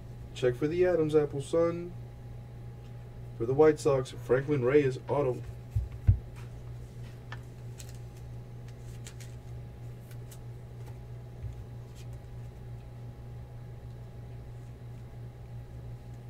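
Trading cards rustle and flick softly as they are sorted by hand.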